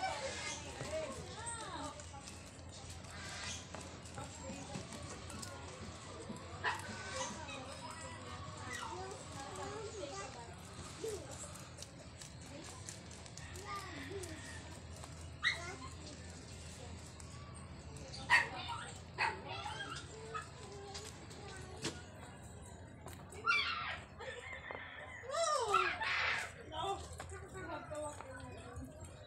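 Rabbits nibble and crunch on fresh leaves close by.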